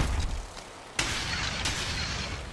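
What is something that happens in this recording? A blade strikes a creature with a sharp hit.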